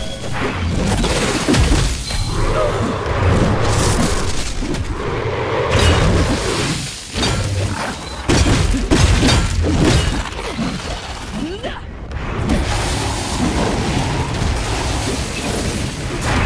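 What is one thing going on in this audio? Weapons clash and strike with sharp impacts.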